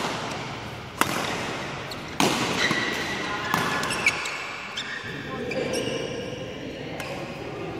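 Badminton rackets smack a shuttlecock back and forth, echoing in a large hall.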